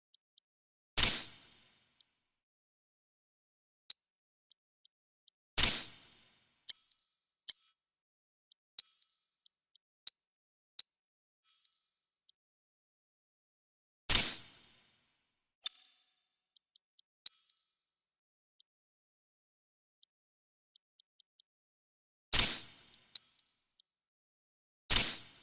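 Deeper whooshing swells sound when the menu changes pages.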